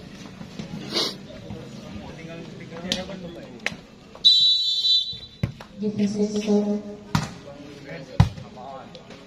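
A volleyball is struck with sharp smacks.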